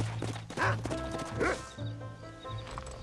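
Horse hooves clop on the ground.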